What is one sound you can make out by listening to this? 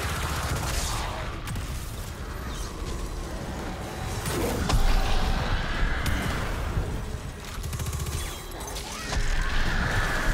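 A beam weapon hums and crackles as it fires.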